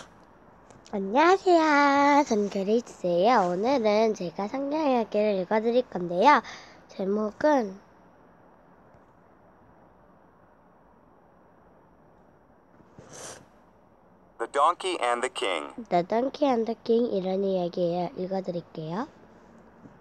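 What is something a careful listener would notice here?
A young girl speaks with animation, close to a computer microphone.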